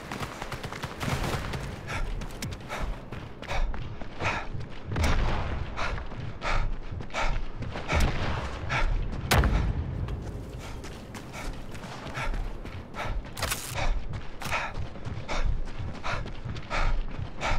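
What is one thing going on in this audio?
Footsteps run quickly over gravel and stone.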